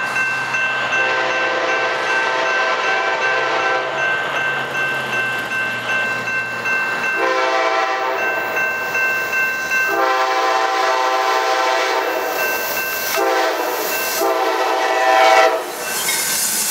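A diesel passenger locomotive's multi-chime air horn blows long blasts.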